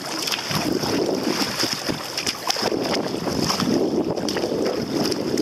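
Choppy water slaps against a kayak hull.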